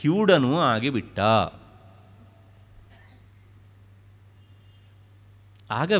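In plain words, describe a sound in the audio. An elderly man chants in a wavering voice.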